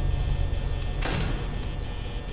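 A heavy metal door slams shut.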